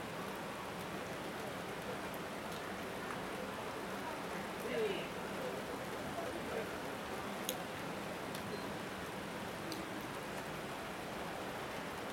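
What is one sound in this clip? Steady rain patters on umbrellas outdoors.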